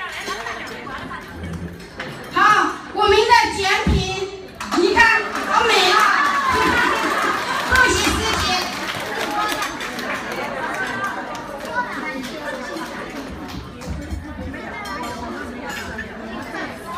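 A crowd of children chatter and shout in a room with some echo.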